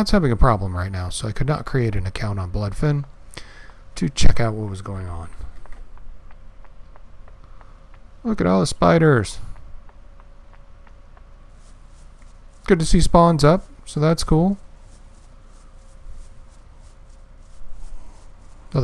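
Footsteps run steadily over soft ground.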